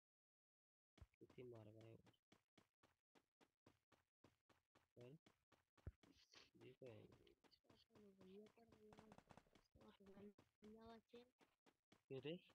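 Footsteps run quickly over grass.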